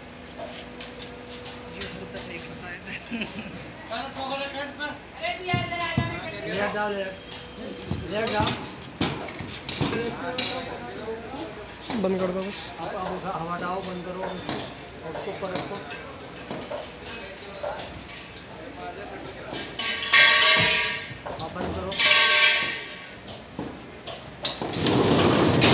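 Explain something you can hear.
A metal sofa bed frame clanks and scrapes as it is pulled out and pushed back.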